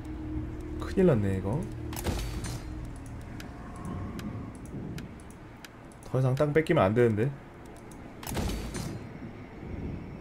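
Soft interface clicks sound as game menus open and close.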